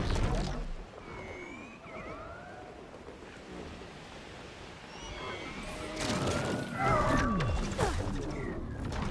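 A large flying creature lets out high, wavering screeches.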